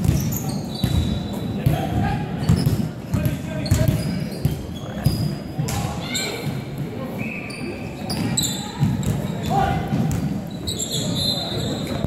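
Players shout and call out to each other across a large echoing hall.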